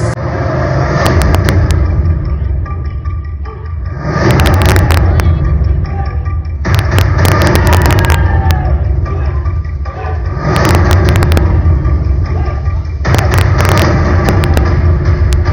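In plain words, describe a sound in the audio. Drums pound in bursts with crashing cymbals.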